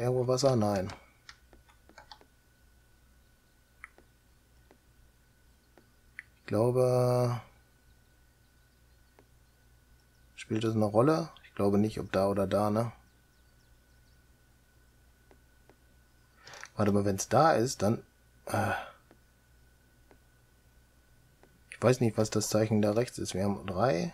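A middle-aged man talks calmly into a close microphone, in short bursts with pauses.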